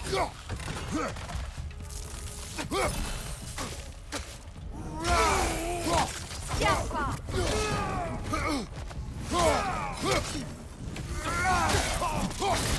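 An axe strikes with heavy, ringing blows.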